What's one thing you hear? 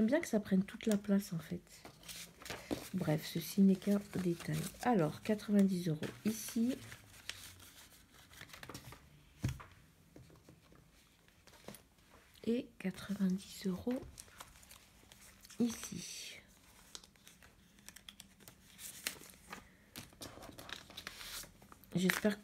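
Plastic sleeves and paper rustle as pages are flipped by hand.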